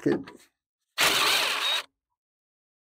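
A cordless power drill whirs briefly.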